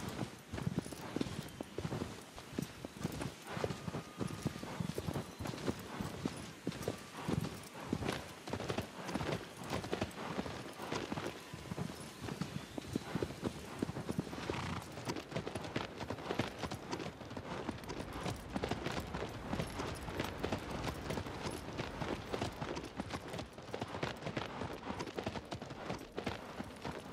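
Horse hooves thud rapidly on the ground at a gallop.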